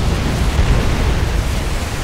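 A shell explodes with a deep boom.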